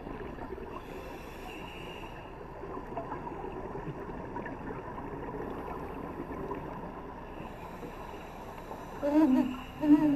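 Air bubbles from a diver's breathing gurgle and rush upward underwater.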